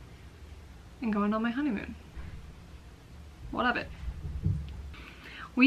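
A young woman speaks expressively and close to the microphone, in short phrases.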